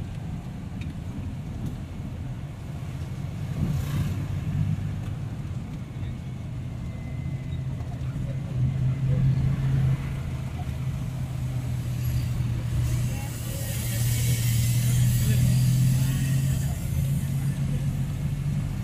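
Tricycles and motorbikes pass by on the street.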